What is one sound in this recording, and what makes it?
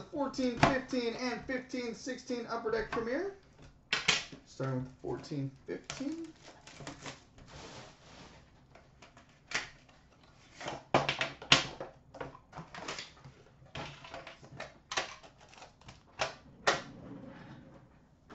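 Cardboard boxes knock and rustle as they are handled.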